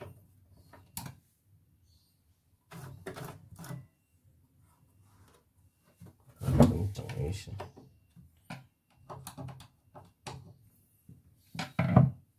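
A screwdriver scrapes and clicks against metal parts.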